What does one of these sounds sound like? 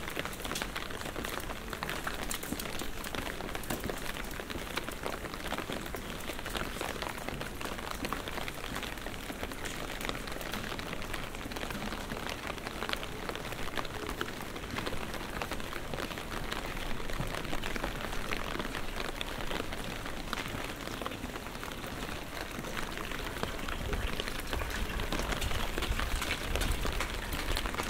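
Light rain patters steadily on wet cobblestones outdoors.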